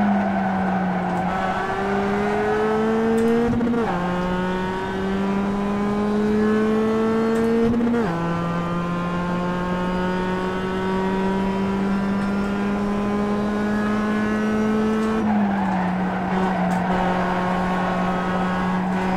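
A racing car engine revs up steadily and drops in pitch at each gear change, heard through speakers.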